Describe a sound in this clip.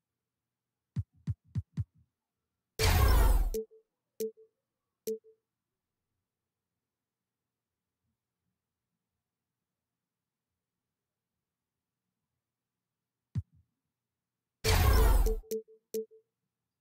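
Short game menu clicks sound in quick succession.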